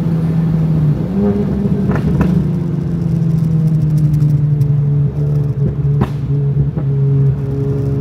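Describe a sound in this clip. The engine of a turbocharged four-cylinder car blips as the car slows and shifts down.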